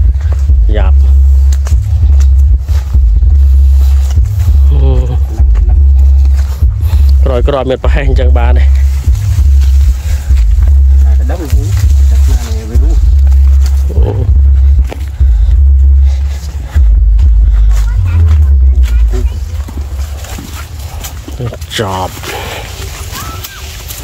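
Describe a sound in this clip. Footsteps crunch over dry stalks and leaves.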